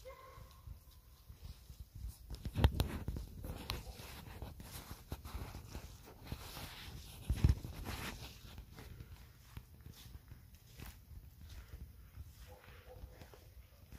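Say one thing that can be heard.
Dry reeds rustle softly in a light breeze.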